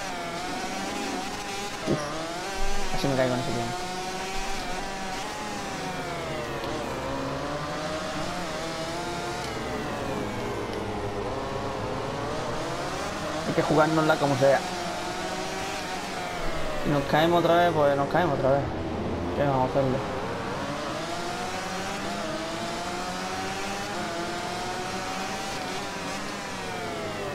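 A motorcycle engine roars loudly, its pitch rising and falling as it speeds up and slows down.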